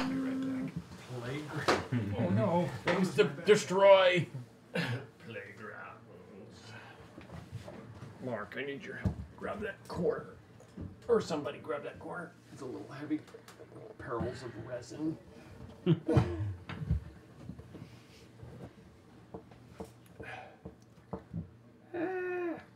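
Several men talk and laugh around a table, heard through microphones.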